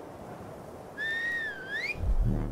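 A sharp whistle rises and falls.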